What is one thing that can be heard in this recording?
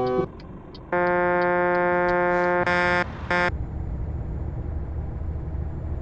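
A truck engine hums steadily at low pitch.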